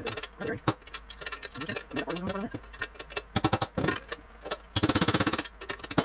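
A hammer taps on metal.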